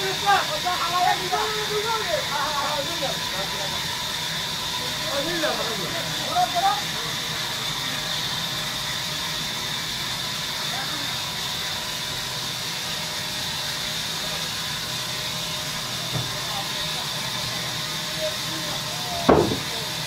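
A large band saw runs with a steady high whine.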